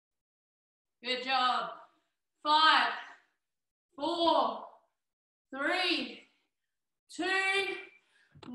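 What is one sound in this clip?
A young woman calls out short words one at a time, at a steady pace, close by.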